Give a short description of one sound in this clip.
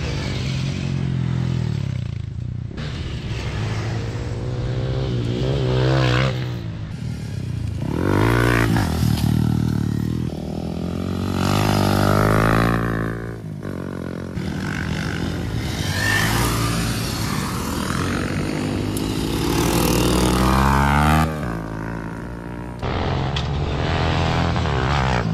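Dirt bike engines rev and roar loudly outdoors, rising and falling in pitch as the bikes pass.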